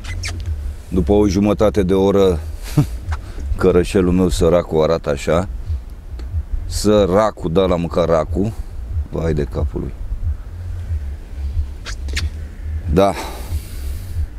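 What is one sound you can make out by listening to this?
A middle-aged man talks with animation close to a clip-on microphone.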